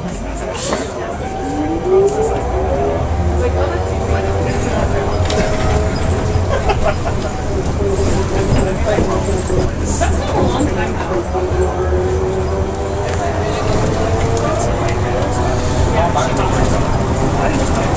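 An electric motor whines, rising in pitch and then holding steady.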